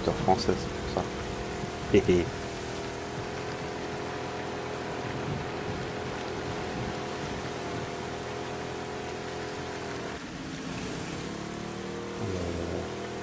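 A small outboard motor catches and drones steadily.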